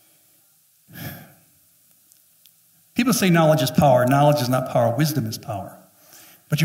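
A middle-aged man speaks with animation through a headset microphone and loudspeakers.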